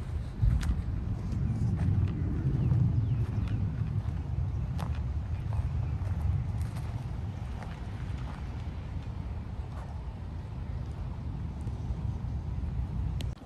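Wind rumbles steadily outdoors.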